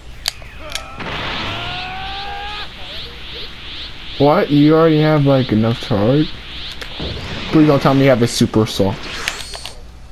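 An energy aura roars and crackles as it powers up.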